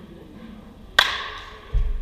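A bat cracks sharply against a baseball in a large echoing hall.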